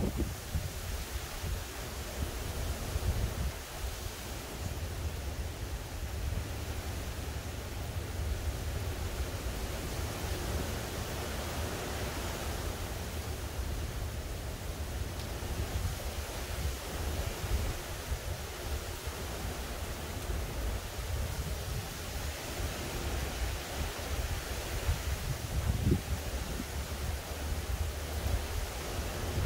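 Tree leaves rustle in the breeze.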